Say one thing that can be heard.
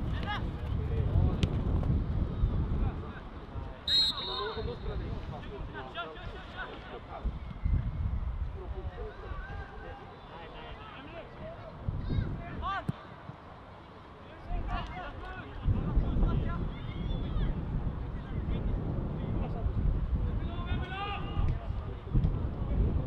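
Young players shout to each other across an open field in the distance.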